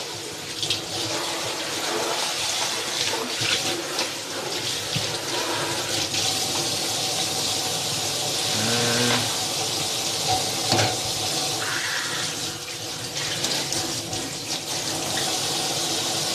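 Tap water runs steadily into a sink.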